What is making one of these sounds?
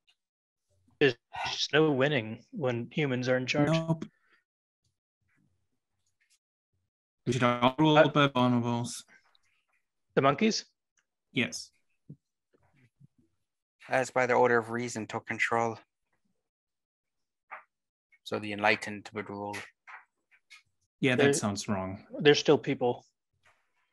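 A man talks casually over an online call, in short bursts with pauses.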